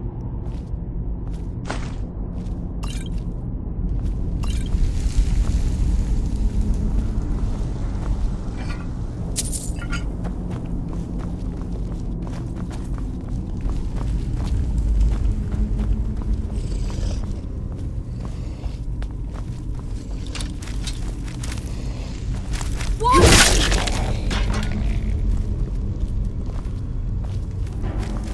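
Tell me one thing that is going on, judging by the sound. A low, steady rumbling drone fills an echoing chamber.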